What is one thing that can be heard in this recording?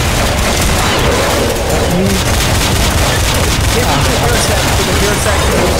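A pistol fires in quick shots.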